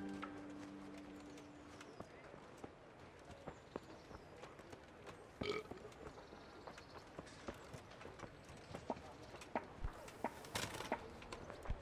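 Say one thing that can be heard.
Footsteps crunch steadily on a dirt path.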